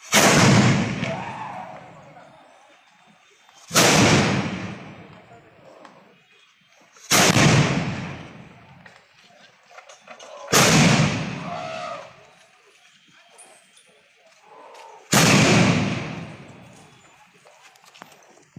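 Cannons fire one after another with loud booming blasts that echo and fade outdoors.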